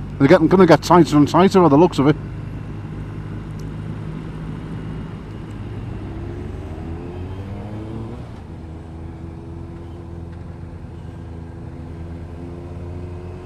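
A motorcycle engine hums steadily, rising and falling in pitch.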